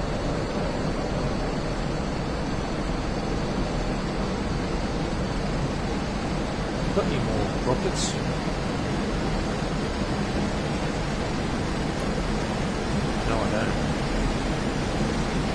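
A twin-engine jet fighter's engines roar steadily in flight, heard from inside the cockpit.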